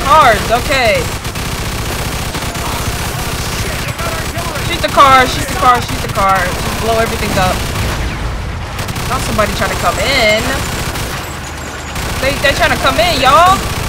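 A machine gun fires in long rattling bursts.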